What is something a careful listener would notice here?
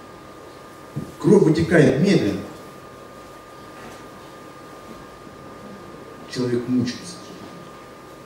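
A man speaks into a microphone in short bursts, heard through loudspeakers in an echoing room.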